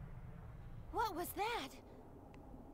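A young woman asks a question in a surprised voice.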